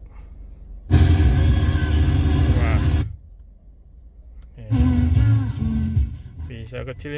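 A car radio plays loudly in short bursts as stations change.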